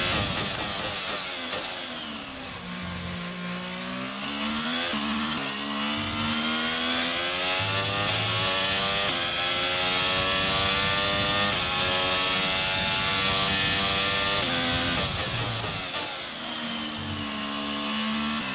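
A racing car engine screams at high revs, rising through the gears and dropping sharply under braking.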